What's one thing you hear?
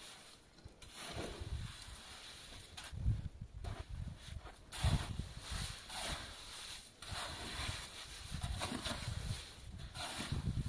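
A shovel scrapes and scoops wet mortar.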